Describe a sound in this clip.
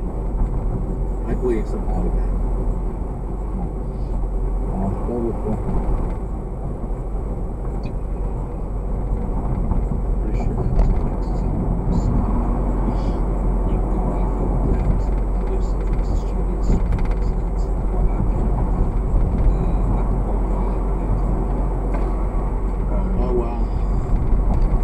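Tyres roar steadily on a paved road.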